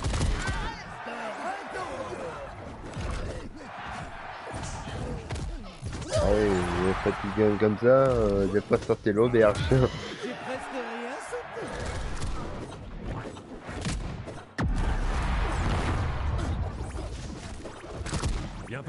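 Cartoon fight sound effects whoosh and thump in quick bursts.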